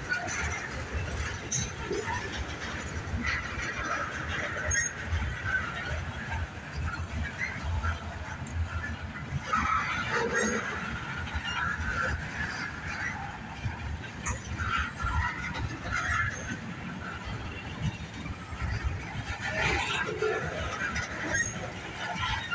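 Wheels squeal and screech against the rails.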